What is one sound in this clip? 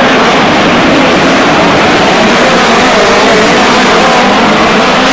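Several racing car engines roar loudly at high revs close by.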